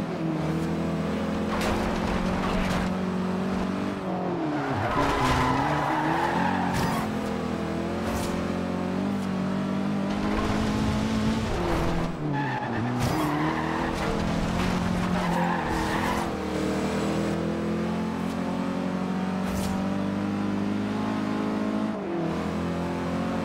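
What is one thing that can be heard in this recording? A rally car engine roars at high revs, rising and dropping as the gears shift.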